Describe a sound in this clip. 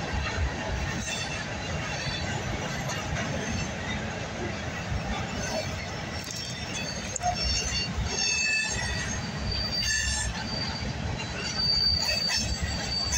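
A freight train rumbles and clatters past on the rails nearby.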